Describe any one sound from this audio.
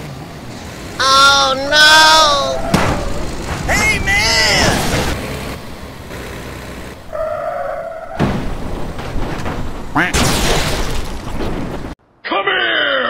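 Metal crashes and crunches in loud impacts.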